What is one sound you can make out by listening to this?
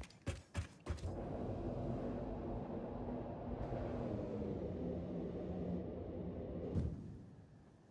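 A low rushing rumble sounds while sliding along a rail.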